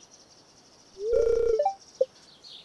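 A locked gate gives a short, low buzzing rattle.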